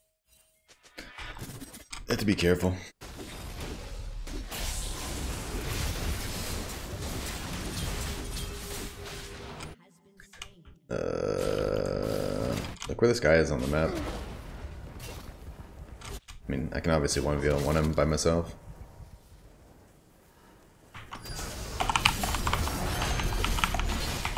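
Game combat effects clash, whoosh and boom.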